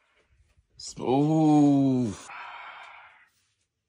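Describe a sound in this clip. A young man groans loudly in dismay, close by.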